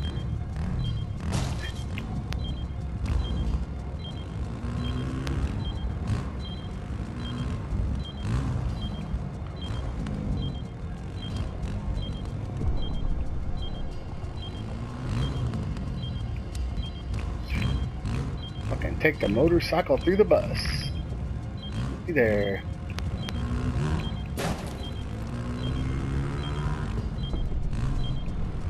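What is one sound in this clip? A motorcycle engine rumbles and revs up and down.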